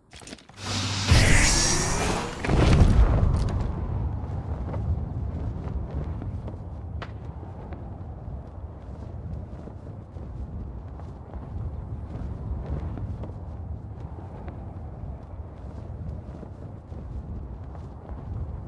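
Wind rushes loudly past during a fall through the air.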